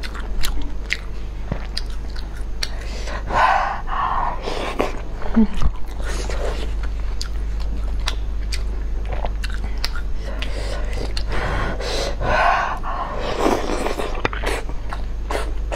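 A young woman chews with smacking sounds, close up.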